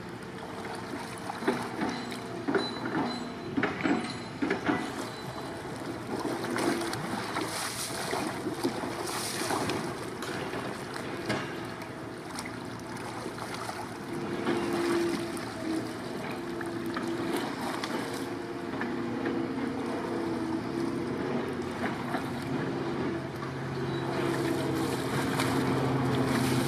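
A paddle splashes and dips in the water.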